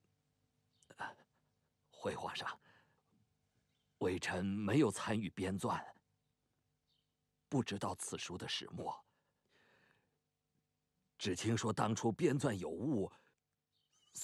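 An elderly man speaks calmly and respectfully, close by.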